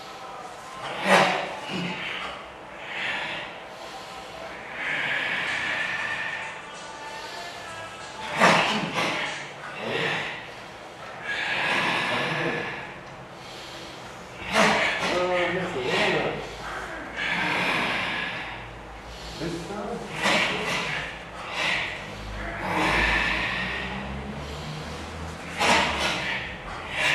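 A man shouts short commands nearby.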